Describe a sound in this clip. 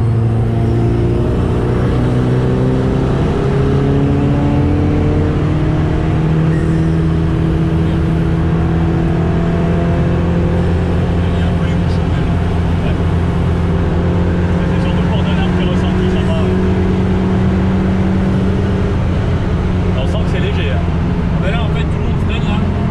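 Wind rushes past the car.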